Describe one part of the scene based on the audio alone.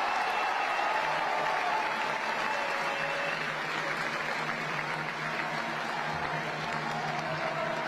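People in a crowd clap their hands.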